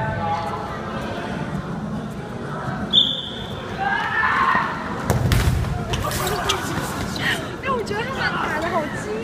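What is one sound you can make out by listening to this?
A crowd of young people shouts and cheers, echoing in a large hall.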